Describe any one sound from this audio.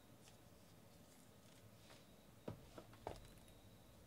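Hands handle a cardboard box, tapping and knocking it.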